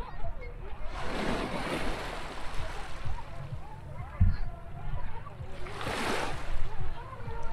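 A whale blows with a loud, rushing whoosh of spray.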